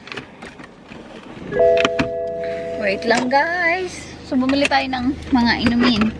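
A seatbelt buckle clicks shut.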